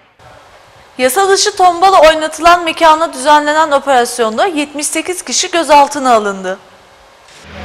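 A young woman reads out calmly and clearly through a microphone.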